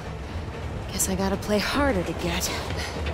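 A young woman speaks playfully and close.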